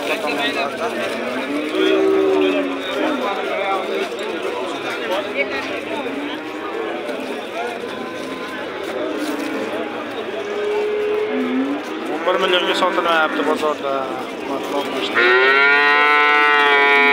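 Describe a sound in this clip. A crowd of men talks all around, outdoors.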